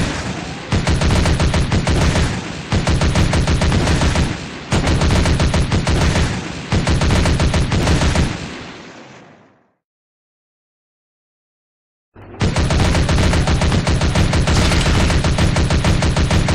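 Small guns fire in rapid bursts.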